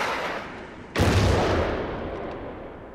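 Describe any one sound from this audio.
A rocket launcher fires with a loud, booming blast that rumbles away.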